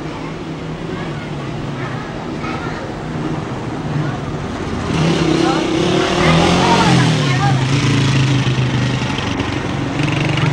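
A motorcycle engine rumbles, growing louder as it approaches.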